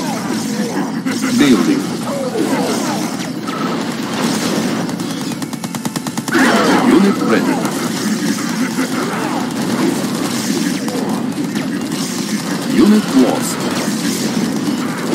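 Explosions boom in a real-time strategy video game battle.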